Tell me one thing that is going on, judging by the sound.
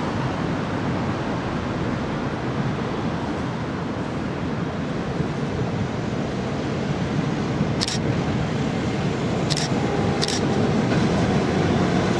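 Traffic rumbles steadily on a road nearby.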